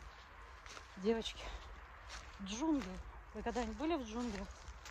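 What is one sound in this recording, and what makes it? A middle-aged woman speaks calmly close to the microphone.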